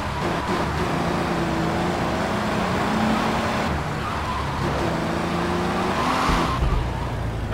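A video-game car engine revs as the car drives along a road.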